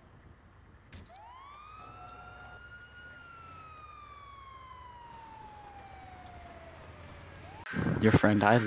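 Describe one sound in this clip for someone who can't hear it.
An ambulance siren wails.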